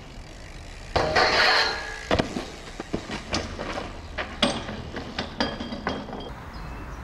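A bike's wheels clatter and bang down concrete steps.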